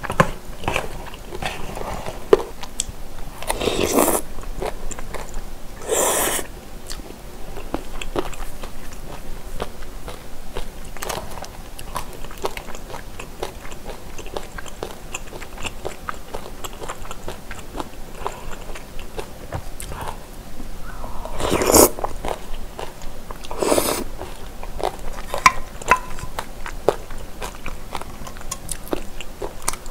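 Chopsticks and a spoon clink against a plastic container.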